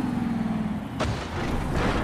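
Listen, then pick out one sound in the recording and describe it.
A heavy truck lands with a thud on dirt.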